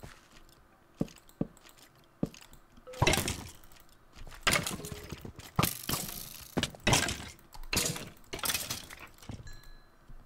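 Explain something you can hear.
Footsteps thud on wood and stone blocks.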